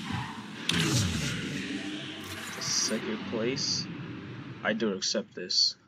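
A race car engine roars at speed.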